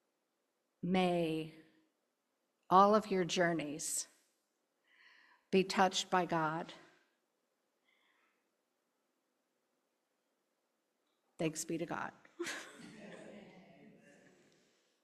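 An elderly woman speaks with animation through a microphone, in short phrases with pauses.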